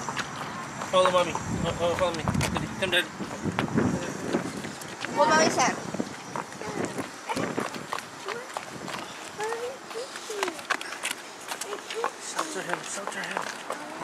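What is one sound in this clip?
A young child calls out nearby.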